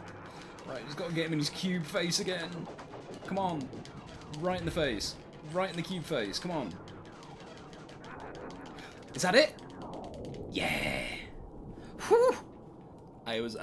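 Explosions burst and rumble in a space battle game.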